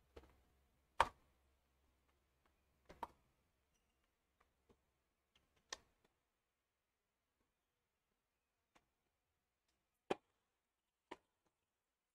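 A tennis ball bounces on a hard court a few times.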